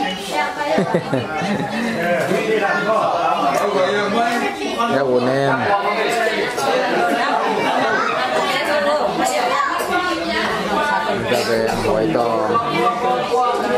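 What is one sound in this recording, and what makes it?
A baby babbles.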